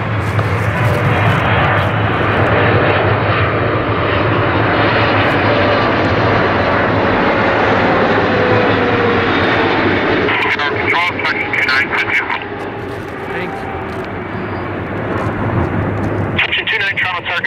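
A twin-engine Boeing 777 jet airliner roars on landing approach.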